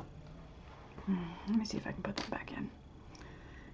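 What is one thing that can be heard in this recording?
A young woman speaks briefly and quietly, close to the microphone.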